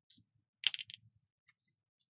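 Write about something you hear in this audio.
Paper rustles softly as hands move over it.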